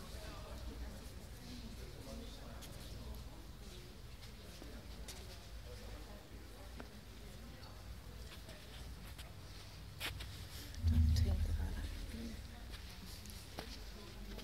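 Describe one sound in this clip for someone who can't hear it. Several people talk quietly at a distance in a large echoing hall.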